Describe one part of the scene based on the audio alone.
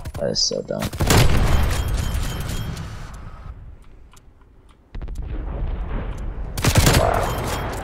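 A sniper rifle fires loud, sharp shots.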